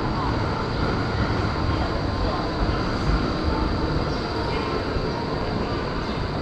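A tram hums and rumbles nearby.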